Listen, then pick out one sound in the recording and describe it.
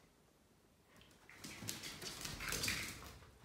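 A dog's paws click and patter on a hard tiled floor.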